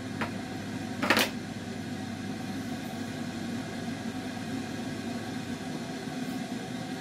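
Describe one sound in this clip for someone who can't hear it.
Dry powder pours into a cup.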